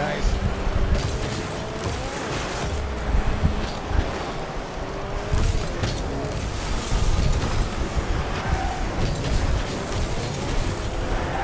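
A rocket booster hisses in bursts.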